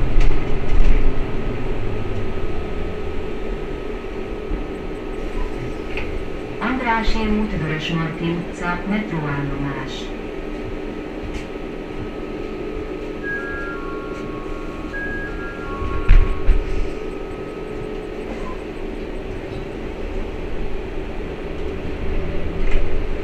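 A bus rattles and creaks as it moves.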